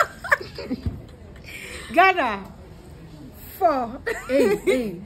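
A young woman laughs and exclaims with high-pitched cries close by.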